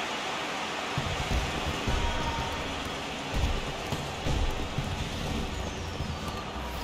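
Fireworks boom and crackle overhead.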